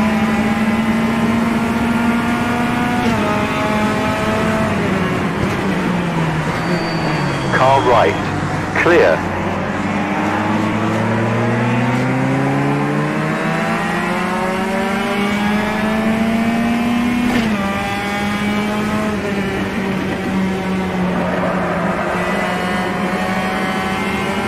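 A racing touring car engine revs hard and shifts gears.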